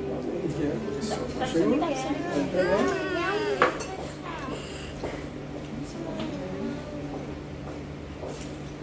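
Young children chatter nearby.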